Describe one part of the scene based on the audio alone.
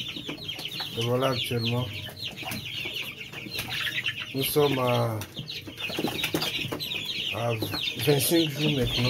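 Many chicks peep constantly and shrilly close by.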